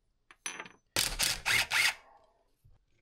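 An impact wrench rattles in short bursts.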